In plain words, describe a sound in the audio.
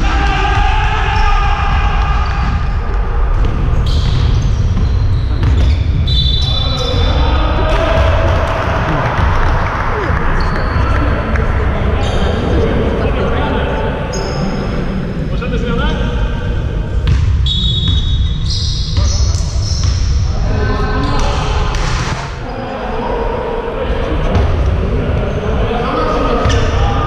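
Young men shout and call out across a large echoing hall.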